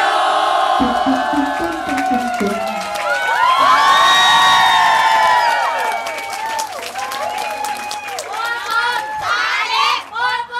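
A crowd of young people sings and cheers loudly nearby.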